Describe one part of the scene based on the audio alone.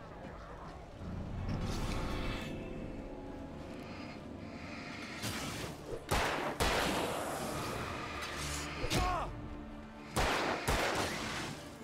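Loud blasts and bangs ring out in a game fight.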